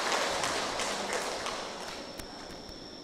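A large crowd applauds in an echoing hall, then the applause fades away.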